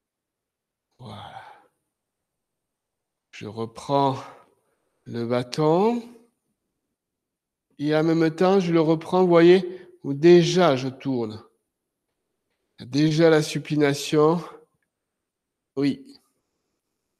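An elderly man speaks calmly, explaining.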